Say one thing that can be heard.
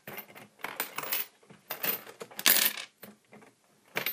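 Coins clink and slide against each other.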